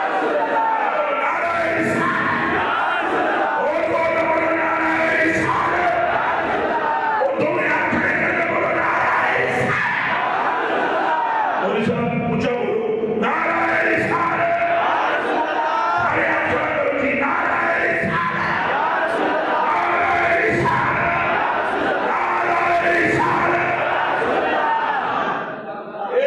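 A man sings loudly and with passion into a microphone through loudspeakers.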